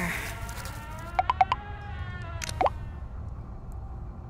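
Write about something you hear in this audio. A phone chimes with incoming messages.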